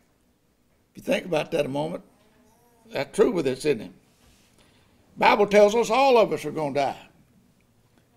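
An elderly man speaks slowly and calmly into a microphone, in short phrases with pauses.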